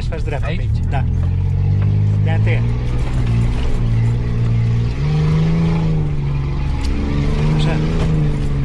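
A vehicle's cabin rattles and knocks over a bumpy track.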